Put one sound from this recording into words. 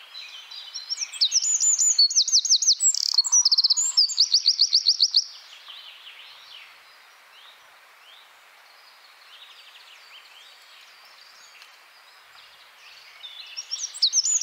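A small songbird sings a loud, rapid trilling song close by.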